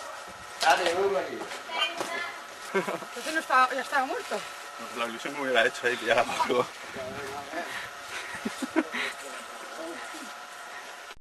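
Men talk loudly with animation close by.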